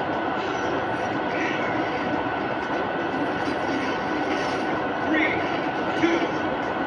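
Fighting game music and sound effects play from a television loudspeaker.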